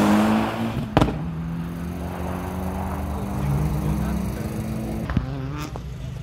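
A rally car's exhaust pops with sharp bangs.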